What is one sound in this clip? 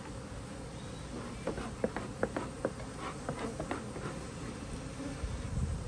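Bees buzz around a hive.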